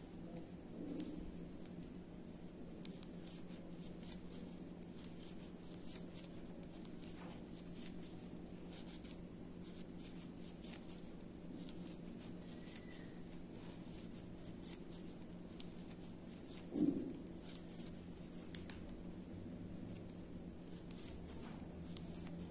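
Yarn rustles as it is pulled through stitches.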